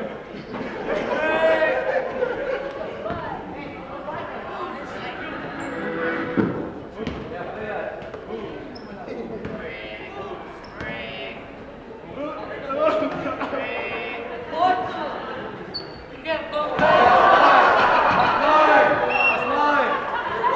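Voices of young players and spectators call out in a large echoing gym.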